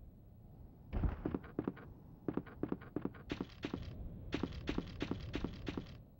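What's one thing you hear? Footsteps echo on a hard floor in a large hall.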